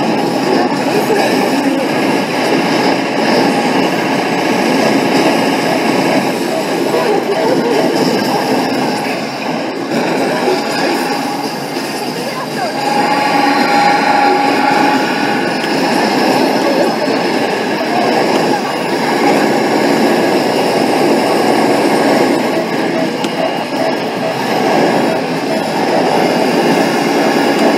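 Game music plays loudly from an arcade cabinet's speakers.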